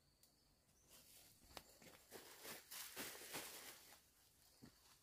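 A plastic bag rustles and crinkles as it is handled.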